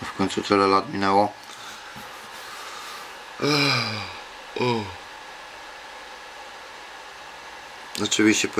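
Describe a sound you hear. A man speaks close to the microphone in short bursts.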